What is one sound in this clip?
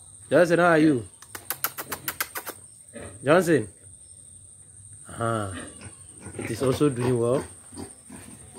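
A young pig squeals in short bursts.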